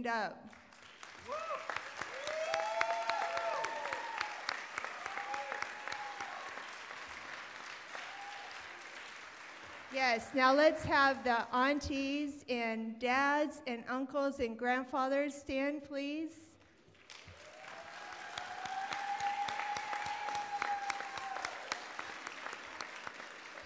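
A large crowd chatters and cheers.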